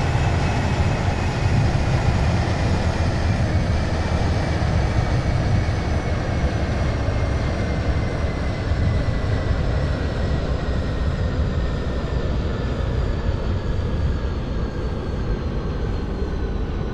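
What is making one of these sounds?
A train engine rumbles and hums, its pitch slowly falling as it slows down.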